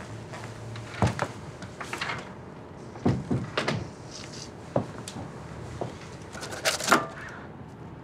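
Footsteps cross a hard floor.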